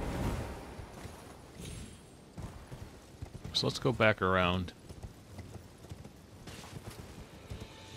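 Horse hooves clop on rock.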